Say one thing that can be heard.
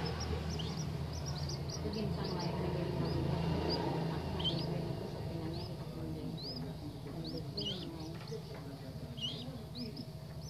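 Young birds peep with high, short chirps close by.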